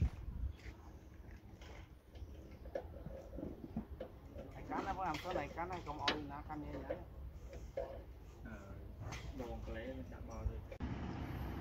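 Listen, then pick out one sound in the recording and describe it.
Metal tools clink and clatter.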